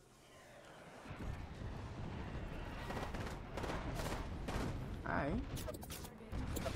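An explosion roars.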